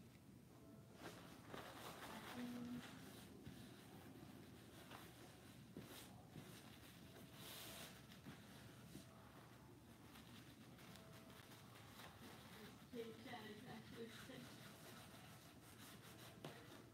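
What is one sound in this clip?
A person's hands scrape and rustle against a stiff board.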